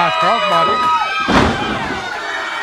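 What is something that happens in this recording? A wrestler slams onto the ring mat with a loud thud.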